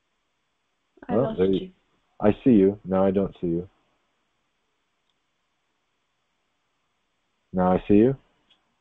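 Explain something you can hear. A middle-aged man speaks calmly and warmly, heard through an online call.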